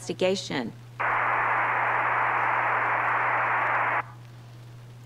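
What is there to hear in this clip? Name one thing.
An intercom buzzes steadily.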